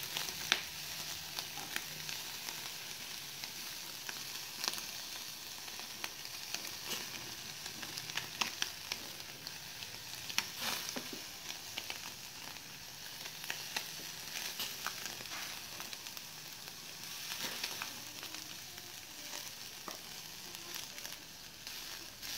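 Meat skewers sizzle over hot coals.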